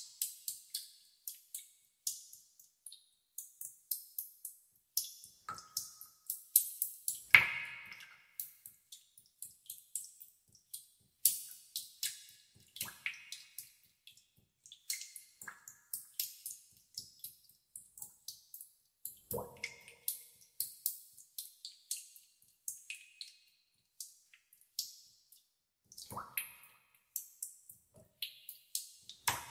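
Water drops fall into still water with quick, bright plinks and splashes.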